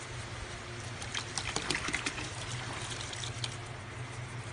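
Granules pour from a bottle into water with a soft hiss.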